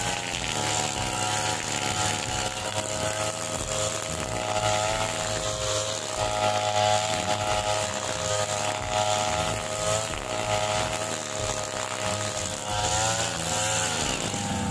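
A trimmer line whips and cuts through grass.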